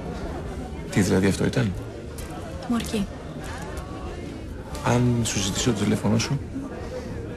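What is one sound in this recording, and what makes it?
A man speaks calmly and quietly nearby.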